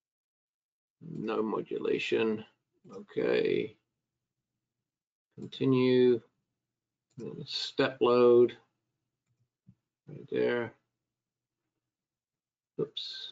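A man speaks calmly into a close microphone, explaining in short phrases.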